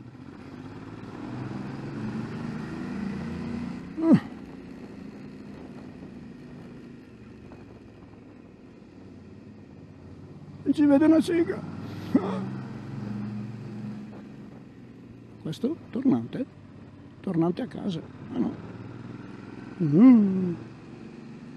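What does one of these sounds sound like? A motorcycle engine hums steadily at low revs.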